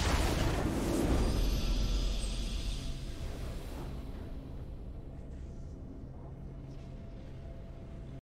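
A triumphant victory fanfare plays and slowly fades.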